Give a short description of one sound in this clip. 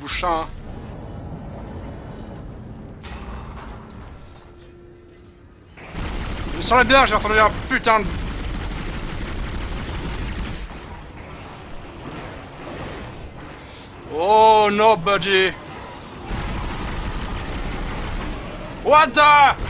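A young man speaks loudly and excitedly into a microphone.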